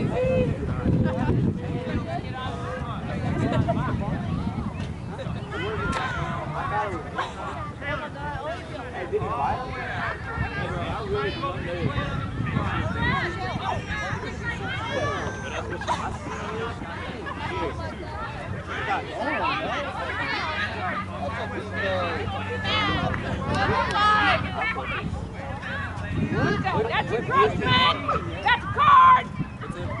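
Young women and girls talk and call out nearby outdoors.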